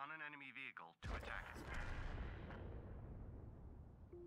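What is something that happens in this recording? A tank cannon fires with a heavy boom that rumbles away.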